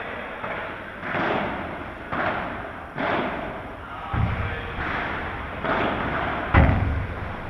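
Padel rackets strike a ball with sharp pops in a large echoing hall.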